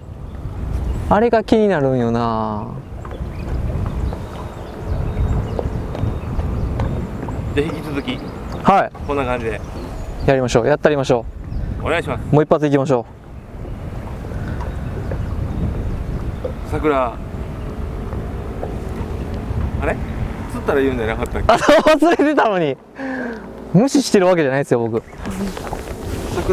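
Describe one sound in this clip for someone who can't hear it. A young man talks calmly close by, outdoors.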